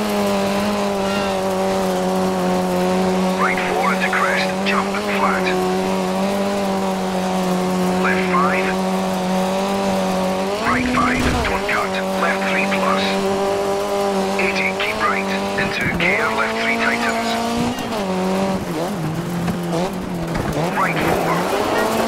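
A rally car engine roars steadily at high revs, shifting gears now and then.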